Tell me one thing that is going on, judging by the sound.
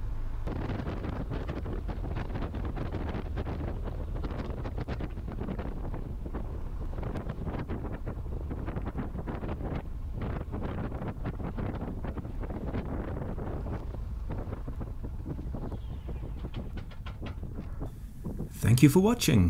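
A small propeller plane's engine idles with a low, uneven rumble.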